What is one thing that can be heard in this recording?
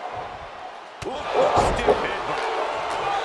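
A body slams heavily onto a wrestling mat with a thud.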